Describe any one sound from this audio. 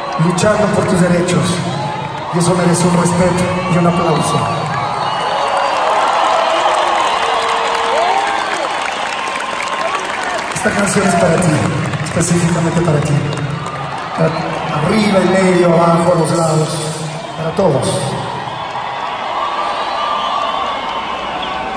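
A crowd sings along and cheers.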